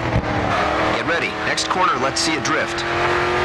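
Tyres squeal as a car slides through a turn.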